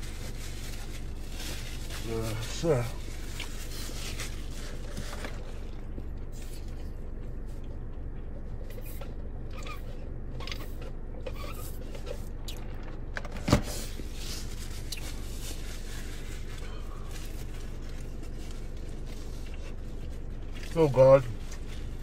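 Paper wrappers crinkle and rustle.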